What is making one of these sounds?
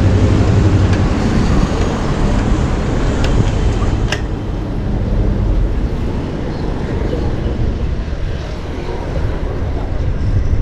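City traffic rumbles steadily nearby.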